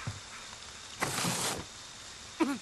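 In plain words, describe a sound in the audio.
A window frame creaks and scrapes as someone climbs through it.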